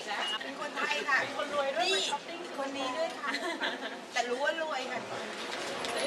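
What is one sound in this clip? Several women chat and laugh excitedly close by.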